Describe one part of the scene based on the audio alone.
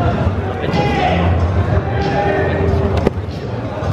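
A wrestler thuds onto a mat.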